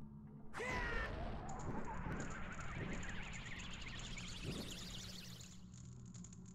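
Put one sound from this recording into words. A magical fire roars up with a whoosh and swirls loudly.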